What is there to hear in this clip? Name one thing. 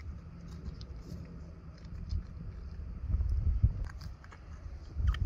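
Wet flesh squelches softly as a blade cuts into it.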